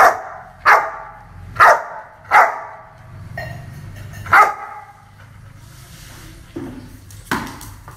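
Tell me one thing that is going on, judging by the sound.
A dog barks loudly nearby, again and again, with a short echo.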